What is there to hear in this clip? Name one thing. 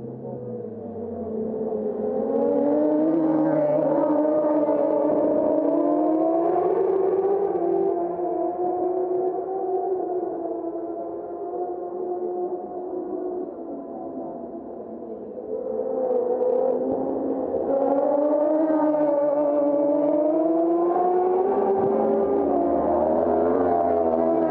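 Racing motorcycles roar past close by, their engines rising and falling in pitch.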